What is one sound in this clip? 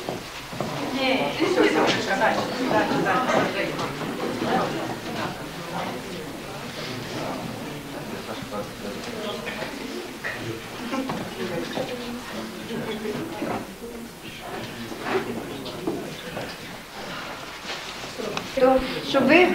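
A crowd of people murmurs and chats nearby in a room.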